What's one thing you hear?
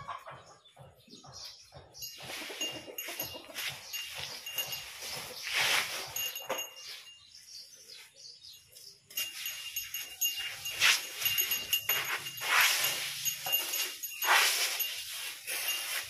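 A baby elephant shuffles and steps across a concrete floor.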